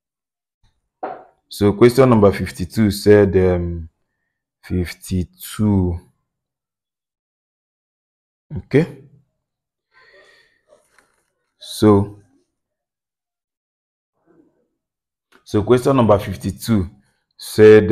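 A man speaks calmly in bursts, close by.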